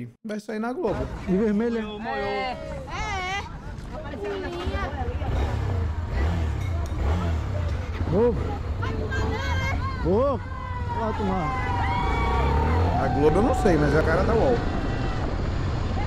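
Men talk outdoors near a motorcycle.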